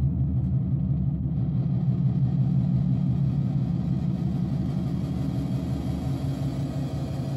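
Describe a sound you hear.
A low electronic synthesizer drone hums steadily.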